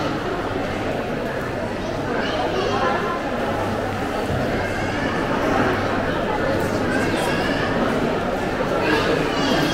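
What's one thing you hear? Many people chatter in a large echoing indoor hall.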